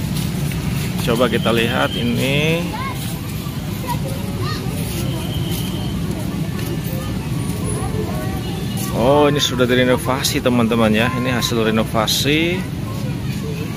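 Children chatter and call out nearby outdoors.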